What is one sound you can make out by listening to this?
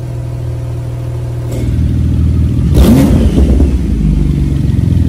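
A sports car engine idles with a deep, throaty rumble from the exhaust.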